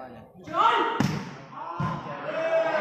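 A ball thumps off a hand.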